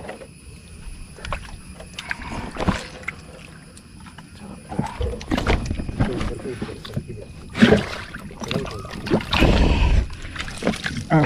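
A fish splashes and thrashes in the water.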